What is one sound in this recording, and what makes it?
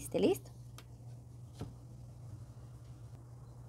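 A cord brushes and taps softly against a plastic board.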